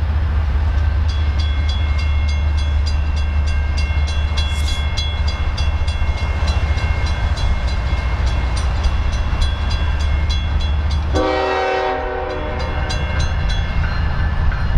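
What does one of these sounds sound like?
A railway crossing bell rings quickly and steadily.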